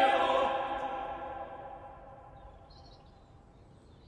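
A choir holds a final chord that rings out and slowly fades in a large echoing hall.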